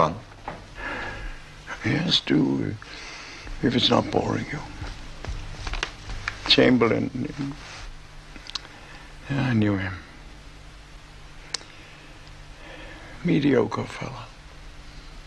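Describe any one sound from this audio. An elderly man speaks weakly and slowly, close by.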